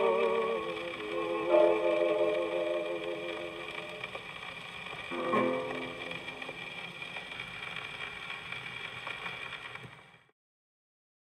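A needle hisses and crackles in the record's grooves.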